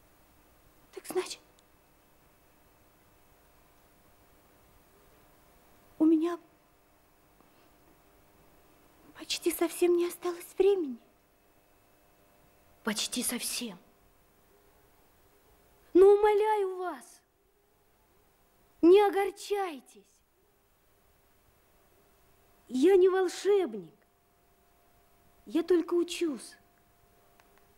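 A young woman answers calmly, close by.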